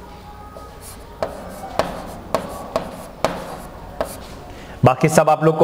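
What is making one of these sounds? A marker taps and squeaks on a whiteboard.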